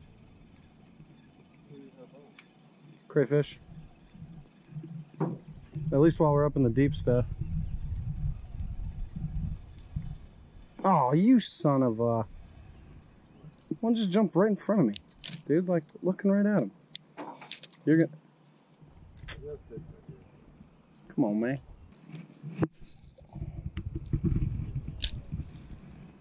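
A spinning reel is cranked, winding in fishing line.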